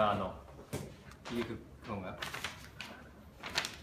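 Paper rustles as a sheet is unfolded.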